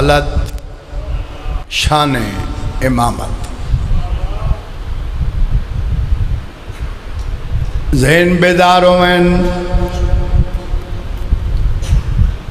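A middle-aged man speaks passionately through a microphone and loudspeakers.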